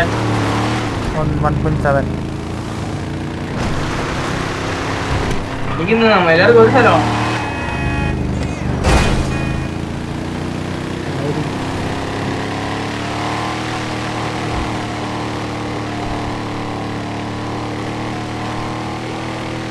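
A truck engine rumbles steadily, revving up and down.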